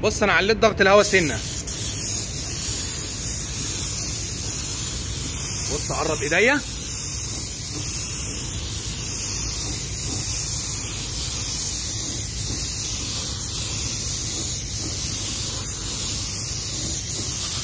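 A spray gun hisses steadily as it sprays paint.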